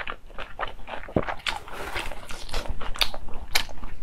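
A thin pancake wrapper rustles.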